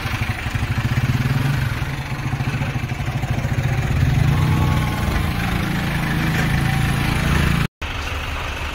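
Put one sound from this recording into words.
A motorcycle engine idles and revs nearby.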